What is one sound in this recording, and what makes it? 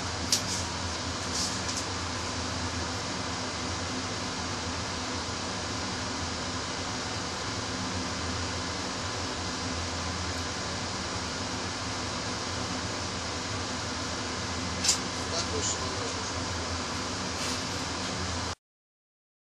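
A train engine idles with a steady low hum.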